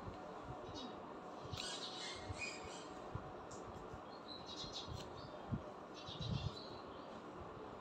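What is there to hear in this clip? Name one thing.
A woman chews food noisily close by.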